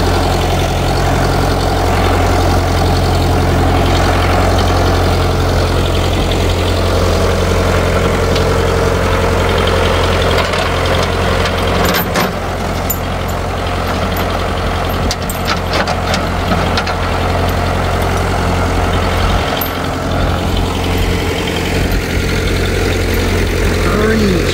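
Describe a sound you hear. A tractor engine idles with a steady low rumble.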